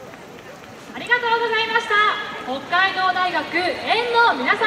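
Many young men chant loudly together through a loudspeaker.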